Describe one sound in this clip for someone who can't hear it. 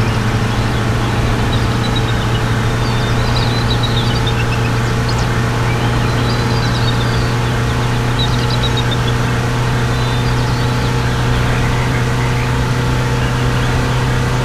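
A passing truck rushes by close alongside.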